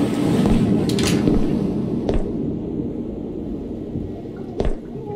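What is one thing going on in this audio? Water laps softly inside a tub.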